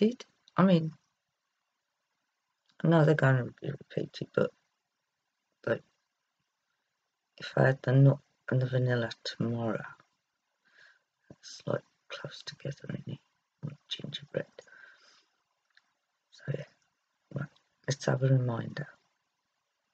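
A middle-aged woman talks calmly close to a microphone.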